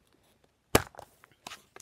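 A plastic case clicks as it is set down.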